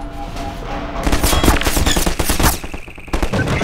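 A powerful energy beam crackles and roars loudly overhead.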